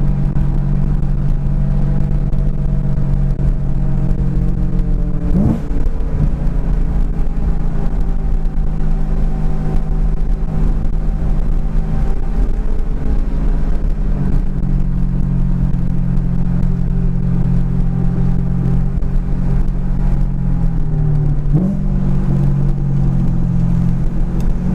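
A car engine hums steadily from inside the car, shifting pitch as it changes gear.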